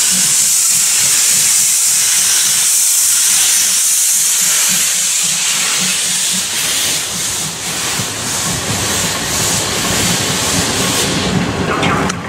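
A steam locomotive hisses loudly as steam escapes near the wheels.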